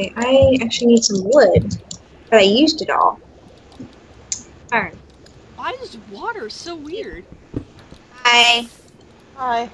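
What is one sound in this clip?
Water bubbles and gurgles.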